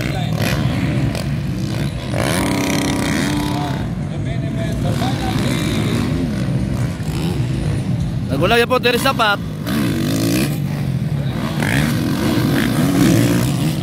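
Motorcycle engines rev and roar loudly.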